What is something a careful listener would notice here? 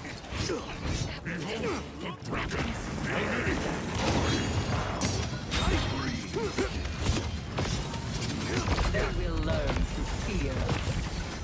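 Weapons fire in rapid bursts with crackling energy blasts.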